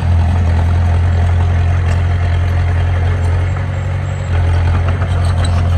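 A bulldozer's diesel engine rumbles steadily nearby.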